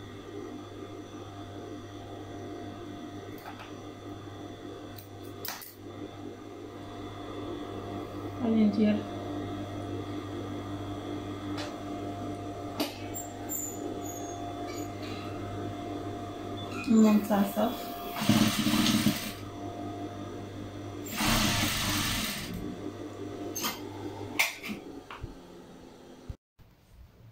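A sewing machine motor hums steadily.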